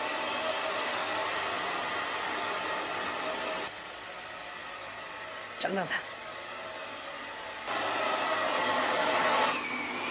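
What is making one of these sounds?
A hair dryer blows.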